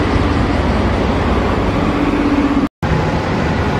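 A bus engine rumbles nearby as a bus pulls away.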